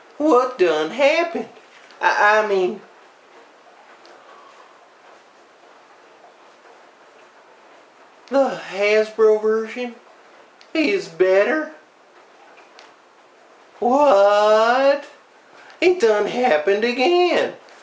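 A man talks in an animated, playful character voice, close by, in short bursts.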